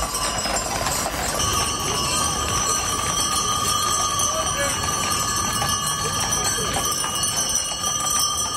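Horse hooves clop on pavement.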